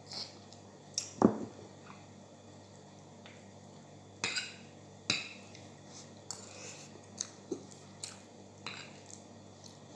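A spoon scrapes and clinks against a plate.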